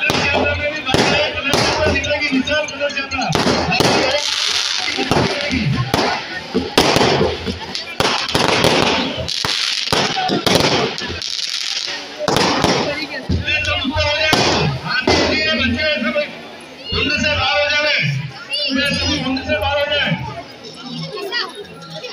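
A crowd of people chatters and chants outdoors.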